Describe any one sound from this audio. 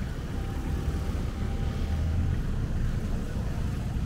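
A motorcycle engine passes close by.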